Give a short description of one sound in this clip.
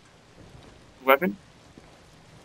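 A young man speaks briefly and loudly into a close microphone.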